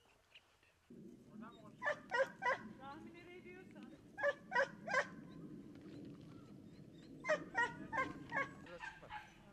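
A young man speaks calmly and close by, outdoors.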